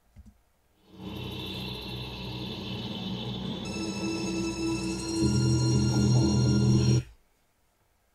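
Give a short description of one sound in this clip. Music with a beat plays through speakers.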